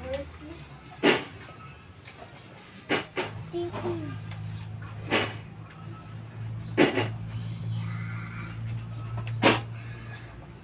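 A hand slaps sharply against skin several times.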